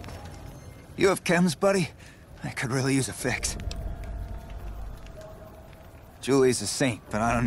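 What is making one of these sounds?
A man speaks with a weary, pleading voice, close by.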